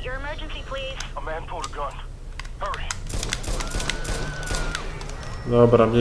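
Pistol shots crack several times.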